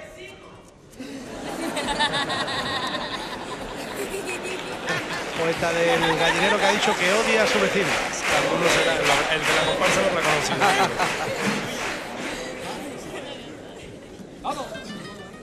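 A large mixed chorus sings loudly through a microphone.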